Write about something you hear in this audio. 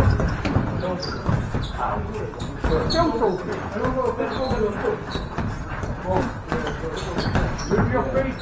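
Boxers' feet shuffle and thump on a padded floor.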